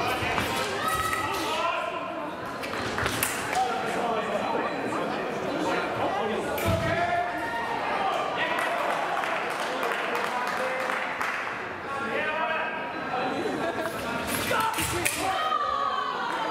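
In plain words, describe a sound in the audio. Fencing blades clash with sharp metallic clicks.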